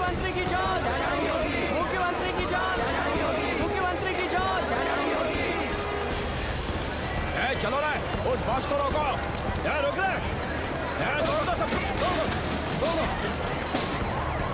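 A crowd of men shouts and yells with agitation.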